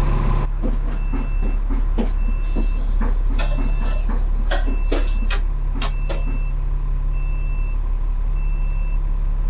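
A door warning beeps in a steady, repeating pattern.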